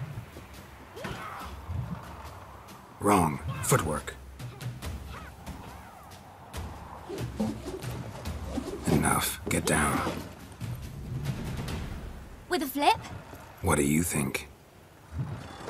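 A middle-aged man speaks gruffly and close by.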